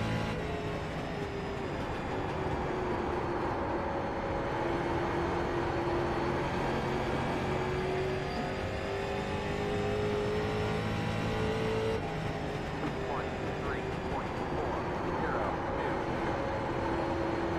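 A race car engine roars steadily, its pitch rising and falling with the gears.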